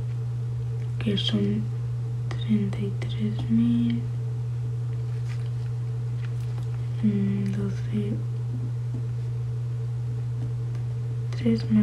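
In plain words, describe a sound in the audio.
A young woman speaks softly and casually into a nearby phone microphone.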